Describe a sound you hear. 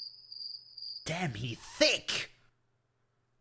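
A young man shouts with animation close to a microphone.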